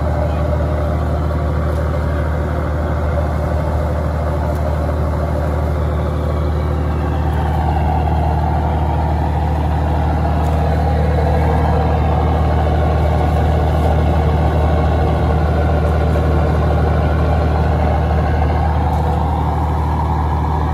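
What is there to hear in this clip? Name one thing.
A boat engine drones steadily and loudly.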